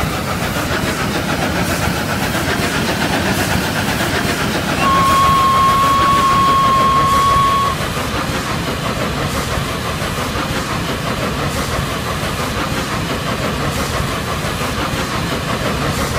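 A steam locomotive chugs steadily along the rails.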